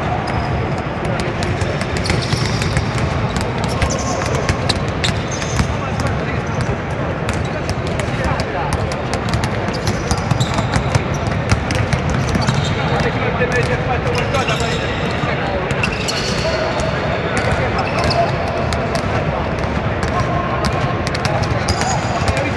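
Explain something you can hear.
Basketballs bounce on a wooden court, echoing in a large hall.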